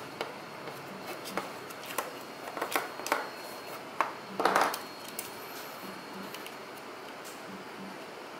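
Plastic parts click and clack as a game controller is taken apart.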